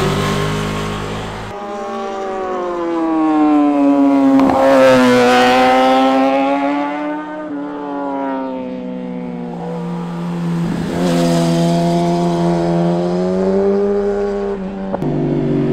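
A motorcycle engine roars, rising and falling in pitch as it sweeps past.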